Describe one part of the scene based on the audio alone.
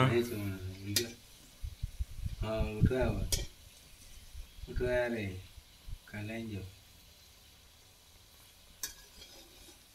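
A metal spoon scrapes against a metal pan.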